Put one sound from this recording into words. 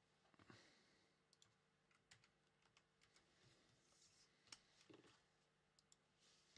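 Cardboard and plastic packs click and rustle as they are handled.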